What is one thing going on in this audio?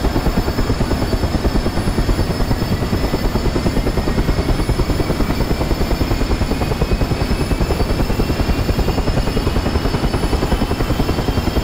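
A helicopter turbine engine whines, slowly rising in pitch.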